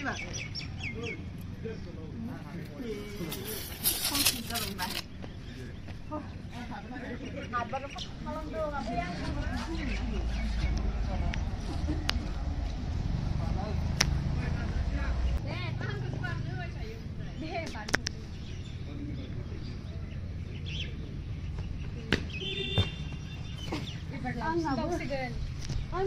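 Young women talk and call out nearby outdoors.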